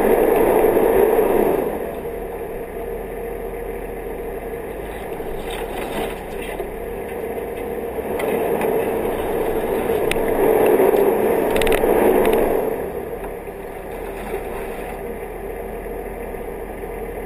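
A bicycle rattles and bumps over a rough dirt trail.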